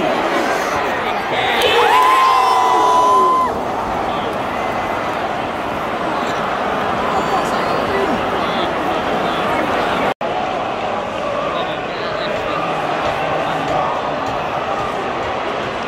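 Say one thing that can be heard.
A large stadium crowd murmurs and chants steadily outdoors.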